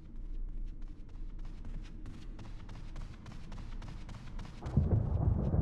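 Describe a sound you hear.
Footsteps thud steadily on wooden stairs.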